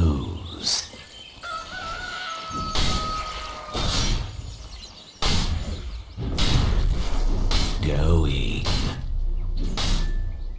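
Short magical whooshes and crackles of spells burst out in quick succession.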